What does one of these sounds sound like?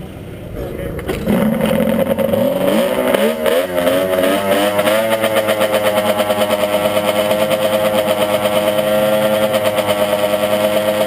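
A motorcycle engine revs up close by, rising in pitch and then holding a steady high drone.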